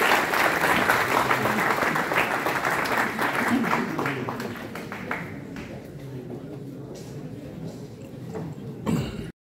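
A woman speaks calmly through a microphone and loudspeakers in a large echoing hall.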